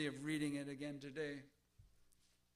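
A man speaks slowly through a microphone.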